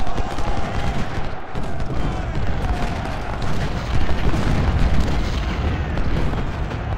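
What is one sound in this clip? Muskets crackle in volleys.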